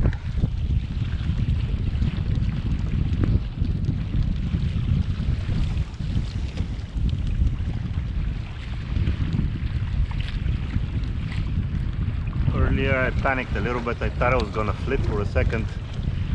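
Water splashes and laps against a small boat's hull.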